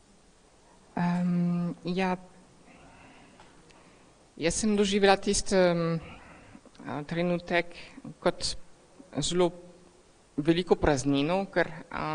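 A woman sings slowly and with feeling into a microphone in a large, echoing room.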